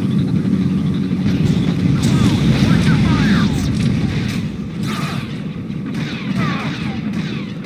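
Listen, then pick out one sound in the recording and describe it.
Lightsabers hum and buzz as they swing.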